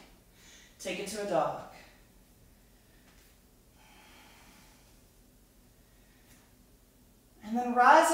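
A woman speaks calmly and clearly, close by, in short phrases.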